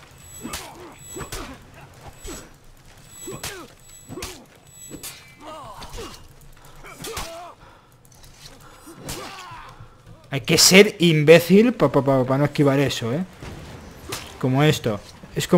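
Swords clash and clang in quick blows.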